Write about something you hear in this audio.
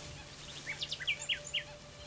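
Wind rustles through reeds.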